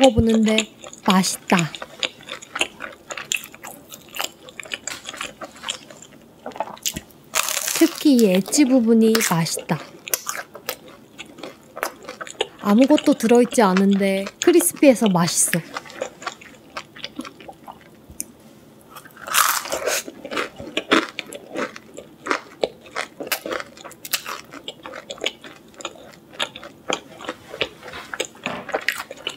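A young woman chews crunchy fried food close to a microphone.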